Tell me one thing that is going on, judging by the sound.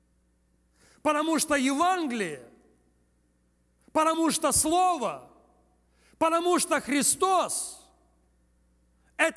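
A man speaks with animation through a microphone, in bursts with pauses between them.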